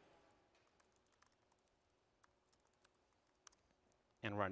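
A man types on a laptop keyboard.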